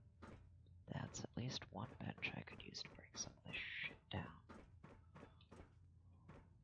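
Footsteps clang on a metal walkway.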